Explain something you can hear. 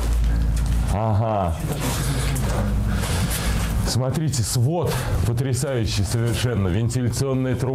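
A man talks with animation close by, his voice echoing off stone walls.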